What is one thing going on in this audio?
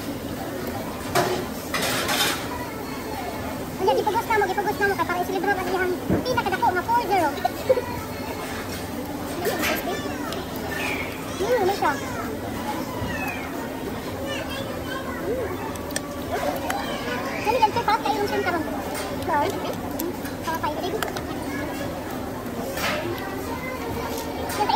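Tongs and utensils clink against dishes.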